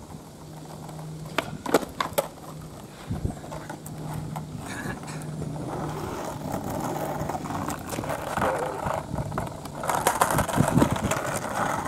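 Skateboard wheels roll and rumble on asphalt.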